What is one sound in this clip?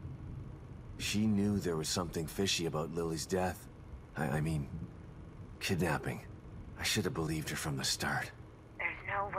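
A man speaks calmly and earnestly.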